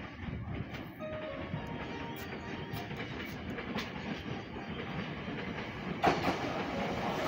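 A train rumbles as it pulls in along the tracks.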